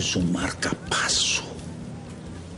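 An elderly man speaks hoarsely and with emotion, close by.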